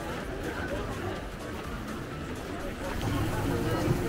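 A crowd chatters outdoors.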